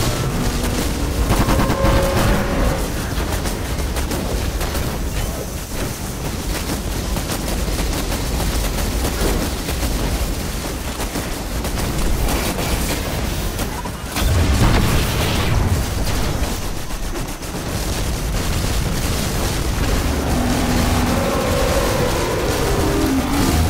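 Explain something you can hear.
Rapid electronic gunfire rattles throughout.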